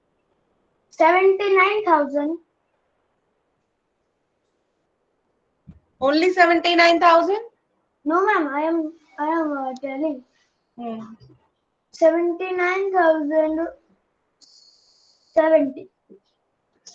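A young boy speaks in short phrases over an online call.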